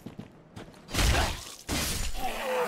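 A sword swings and strikes with a heavy thud.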